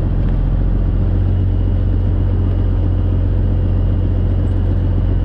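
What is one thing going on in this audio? A truck engine drones steadily with a low rumble inside the cab.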